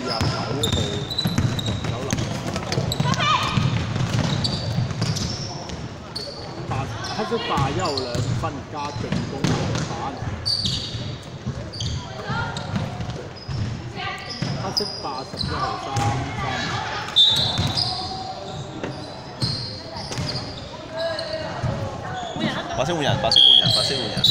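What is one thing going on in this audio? A basketball bounces on a hardwood floor in a large echoing hall.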